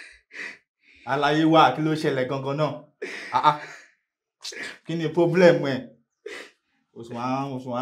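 An elderly man speaks calmly and soothingly close by.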